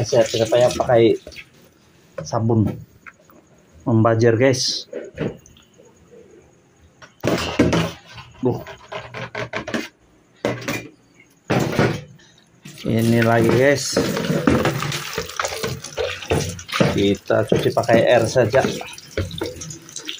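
Water runs and splashes into a metal sink.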